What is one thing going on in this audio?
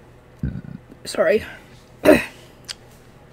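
A young woman gasps in surprise.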